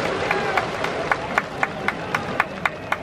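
A crowd claps in a steady rhythm.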